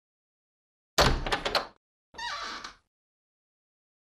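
A door handle clicks and a wooden door creaks open.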